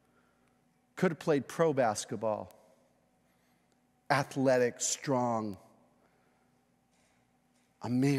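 A middle-aged man speaks with emphasis through a microphone, pausing between phrases.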